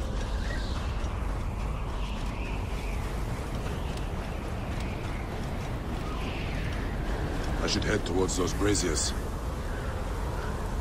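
Wind roars steadily in a sandstorm.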